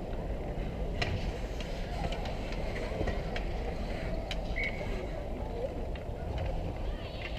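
Hockey sticks clack against a puck and each other.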